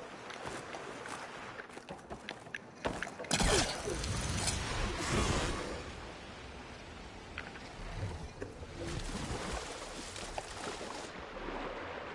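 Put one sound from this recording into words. Waves crash and surge loudly.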